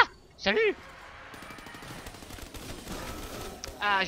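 Gunfire bursts in a video game.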